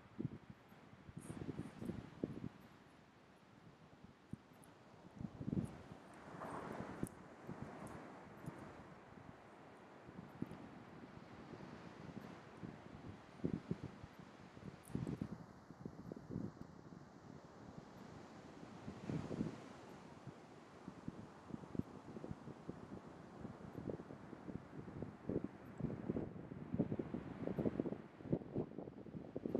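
An elephant seal breathes and snorts heavily close by.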